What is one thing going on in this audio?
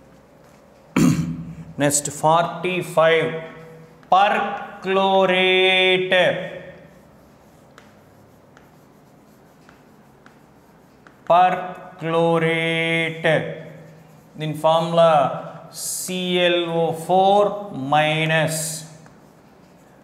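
A man speaks calmly and clearly, pausing between phrases.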